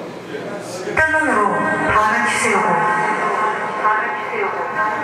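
An electric bass plays loud notes through an amplifier, in a live room.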